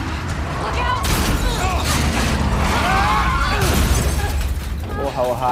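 Gunshots crack and bullets smack into glass.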